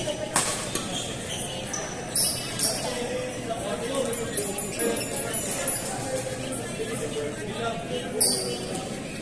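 Badminton rackets sharply smack a shuttlecock in a large echoing hall.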